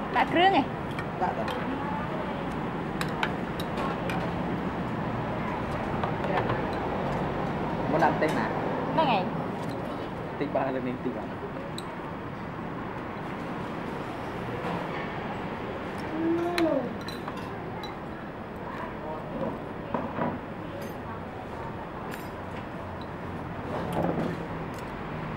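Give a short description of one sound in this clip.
Cutlery clinks against a bowl.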